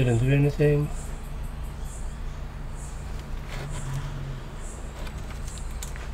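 A small screwdriver clicks and scrapes against a laptop case.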